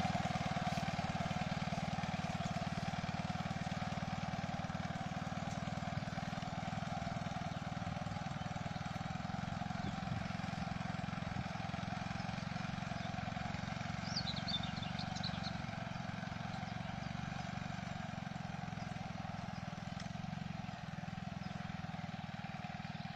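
A small engine of a walk-behind tiller drones steadily nearby.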